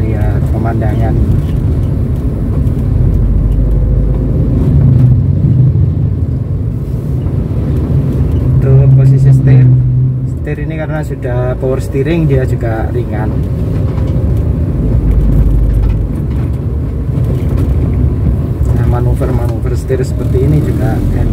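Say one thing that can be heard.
A car engine hums steadily with a low road rumble while driving.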